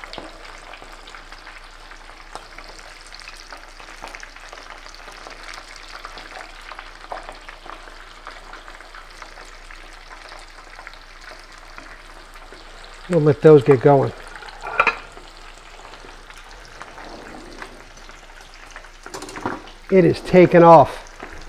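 Food sizzles and crackles in a frying pan.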